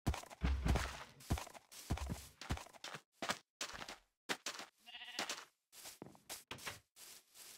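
Footsteps crunch over sand and grass.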